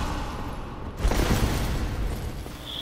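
A figure in armour rolls across a stone floor with a thud.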